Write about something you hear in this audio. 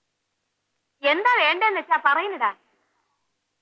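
A boy speaks with animation.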